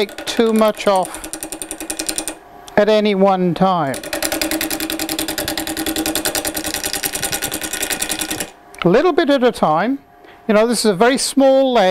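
A wood lathe motor hums, spinning a wooden blank.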